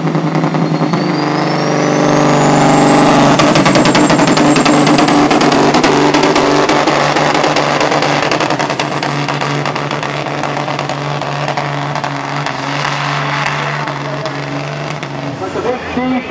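A diesel truck engine roars loudly under full load.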